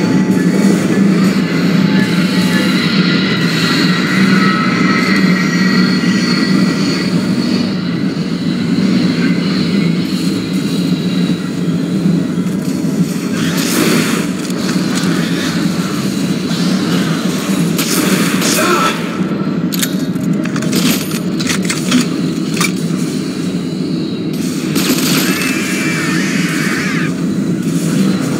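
A low mechanical hum drones steadily throughout.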